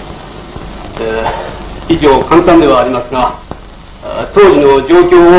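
A man speaks loudly and with emphasis, as if addressing a room.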